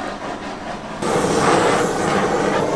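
A blowtorch roars with a steady hiss.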